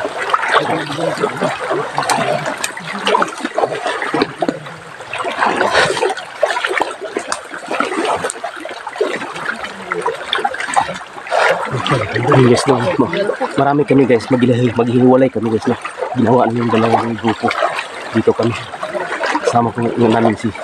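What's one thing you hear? A middle-aged man talks close to the microphone with animation.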